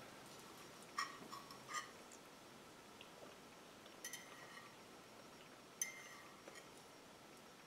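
A fork clinks against a plate.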